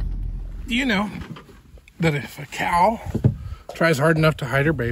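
A man talks calmly and close.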